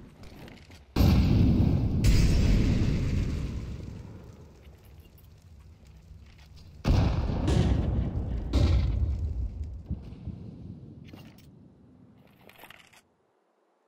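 Smoke grenades burst and hiss loudly, then slowly die away.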